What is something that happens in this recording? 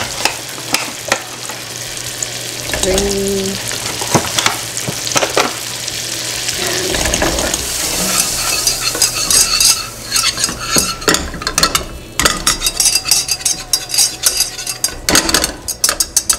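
Butter sizzles and crackles in a pan.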